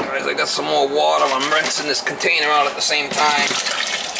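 Liquid pours into a thick stew in a metal pot.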